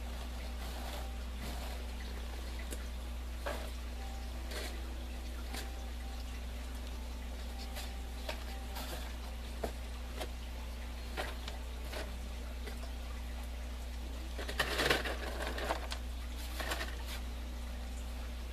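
Root barrier fabric rustles as hands press it into a plastic barrel.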